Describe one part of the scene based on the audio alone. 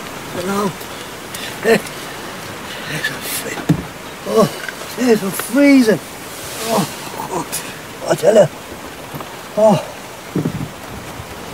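An older man talks calmly close by.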